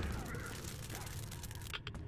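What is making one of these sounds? Flames roar and crackle briefly.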